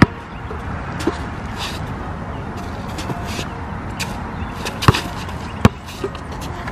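A basketball bounces hard on an outdoor court.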